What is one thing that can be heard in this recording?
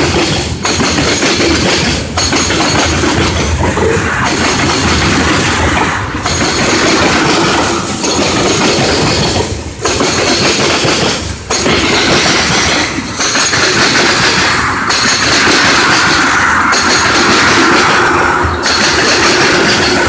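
Steel wheels clack rhythmically over rail joints.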